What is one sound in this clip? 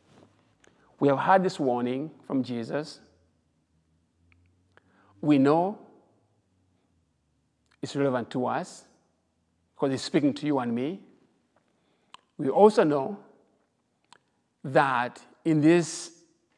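A man speaks calmly and slowly in phrases, close to a microphone.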